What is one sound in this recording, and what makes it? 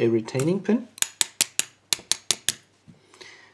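A metal padlock clicks sharply as it is handled.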